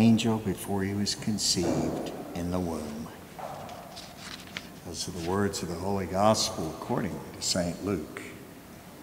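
An elderly man chants slowly through a microphone in a large echoing hall.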